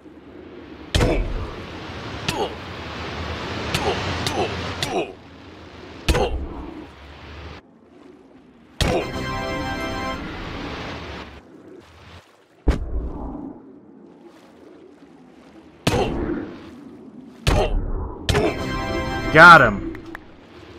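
Hard thuds of blows land in a game fight.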